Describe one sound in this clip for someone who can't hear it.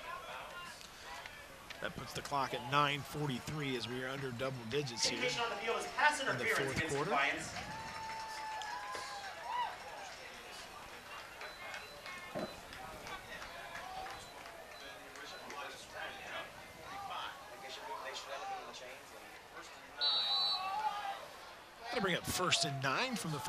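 A crowd murmurs and cheers from the stands outdoors.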